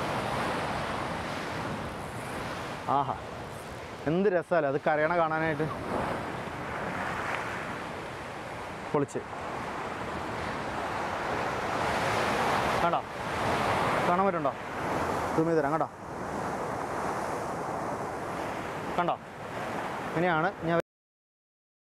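Waves crash and surge against rocks.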